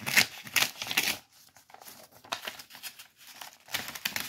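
Paper tears and rustles close by.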